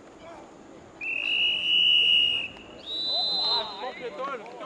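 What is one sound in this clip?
A referee's whistle blows two long, shrill blasts.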